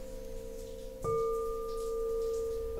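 A singing bowl is struck and rings out with a new clear tone.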